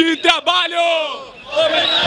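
Young men shout close by.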